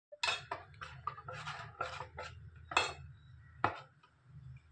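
A metal ladle scrapes and clinks against a steel bowl while stirring batter.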